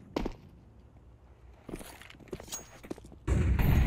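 A knife is drawn with a quick metallic swish.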